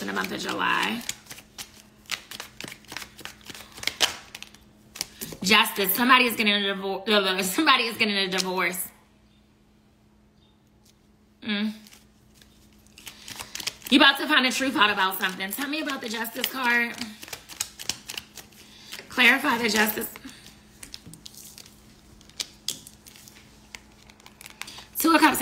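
Cards shuffle and flick in a pair of hands.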